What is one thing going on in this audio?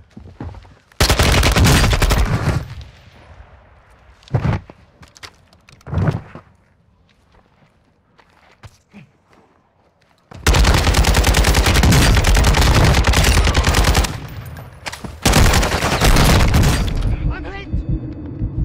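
A rifle fires rapid bursts of loud, sharp shots.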